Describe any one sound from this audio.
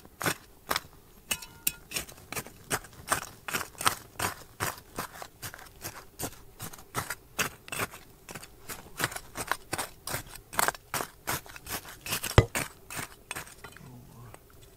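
A metal trowel scrapes rhythmically through dry, gravelly soil.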